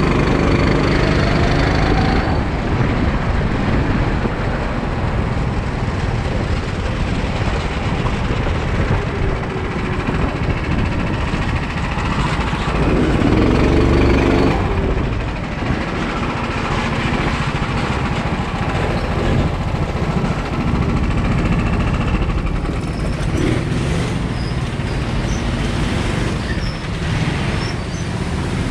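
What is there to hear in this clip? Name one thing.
A go-kart engine buzzes loudly close by, revving up and down.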